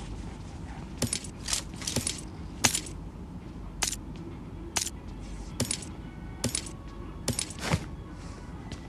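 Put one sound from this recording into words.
Short sharp clicks sound as items are picked up.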